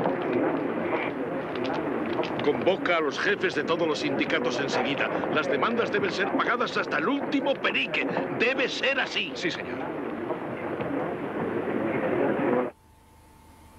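A crowd chatters and shouts loudly all around.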